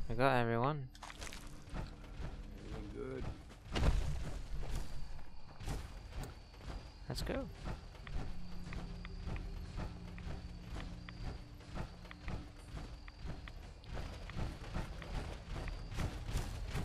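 Heavy metal footsteps thud steadily on the ground.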